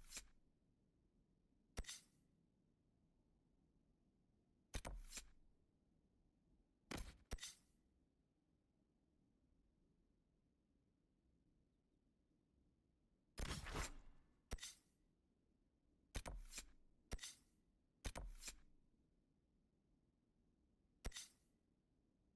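Short game interface clicks and whooshes sound as a map menu opens and closes.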